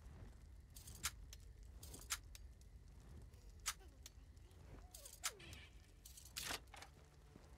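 A lock pick clicks sharply inside a lock.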